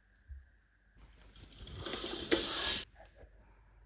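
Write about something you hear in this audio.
A curtain swishes as it is pulled open.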